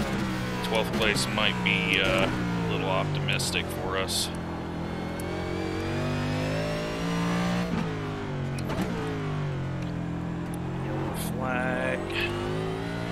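Tyres screech as a racing car brakes into corners.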